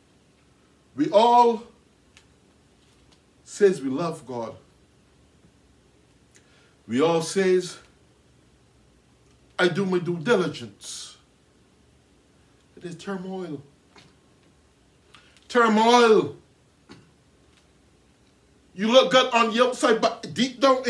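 A man preaches loudly and passionately in short bursts with pauses between.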